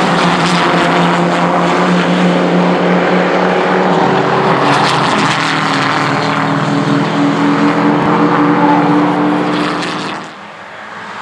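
Racing car engines roar loudly as the cars pull away up a track.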